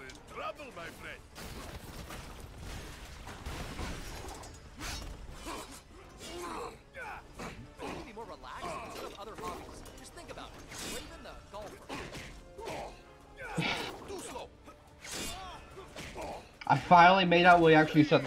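Punches and kicks thud and whoosh in a fast fight.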